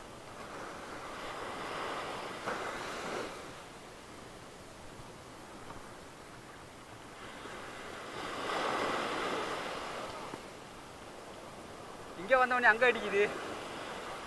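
Waves break and wash up on a beach, swelling and fading.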